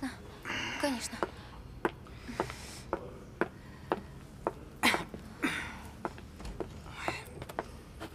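Footsteps click across a hard floor.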